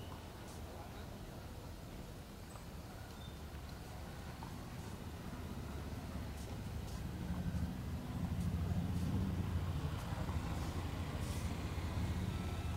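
Footsteps scuff on pavement outdoors.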